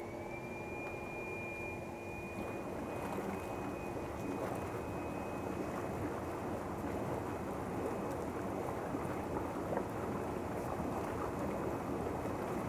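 Water bubbles and churns loudly in a pool as jets come on.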